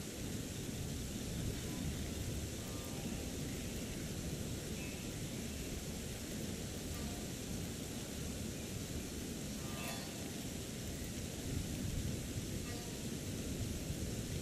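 A stream of water rushes steadily nearby.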